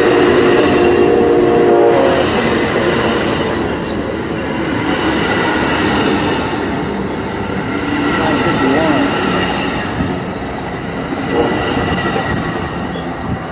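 A passenger train rumbles and clatters past close by.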